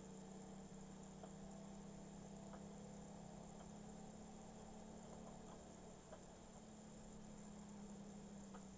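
A small motorbike engine hums steadily.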